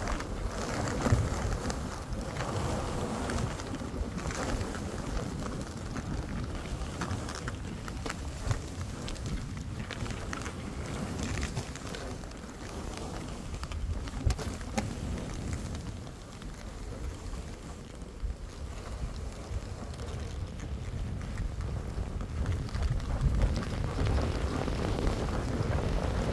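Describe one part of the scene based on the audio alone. Skis hiss and swish through deep powder snow.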